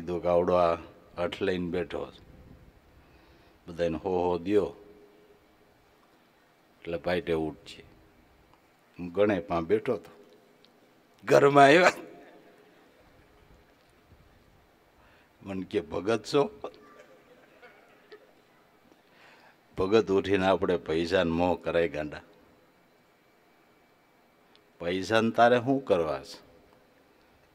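An older man speaks calmly into a microphone in short phrases with pauses, heard through a loudspeaker.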